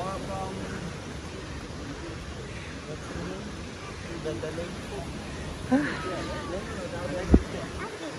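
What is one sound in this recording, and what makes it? Young children talk and call out nearby.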